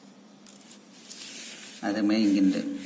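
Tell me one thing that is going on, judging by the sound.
A plastic ruler slides across paper.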